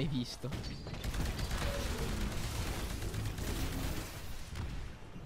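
Gunfire and explosions rumble loudly.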